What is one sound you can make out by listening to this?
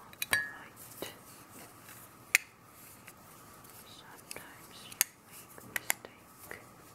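A plastic compact lid clicks open and shut.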